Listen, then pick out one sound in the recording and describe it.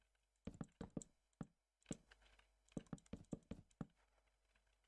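Wooden blocks are placed with quick, dull knocks.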